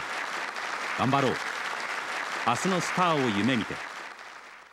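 A man speaks formally through a loudspeaker in a large echoing hall.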